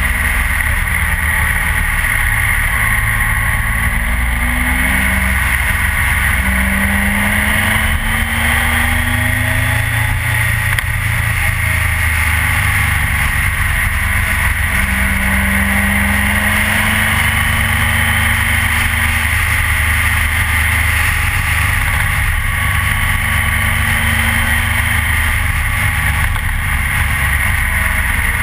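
Wind rushes loudly past, as if heard while riding at speed.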